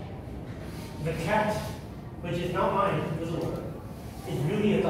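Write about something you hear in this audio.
A man speaks calmly to a room, with a slight echo.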